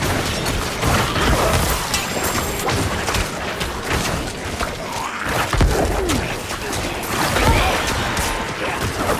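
Swords slash and strike monsters in quick, repeated hits.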